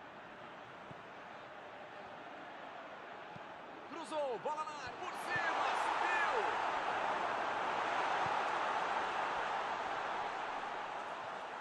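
A large stadium crowd roars and cheers, growing louder partway through.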